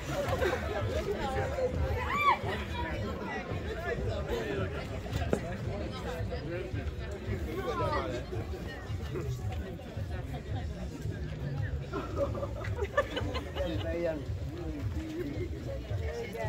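A crowd of men and women talk and call out nearby, outdoors.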